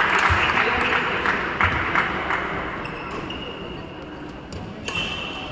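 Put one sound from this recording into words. Shuttlecocks are hit with rackets in a large echoing hall.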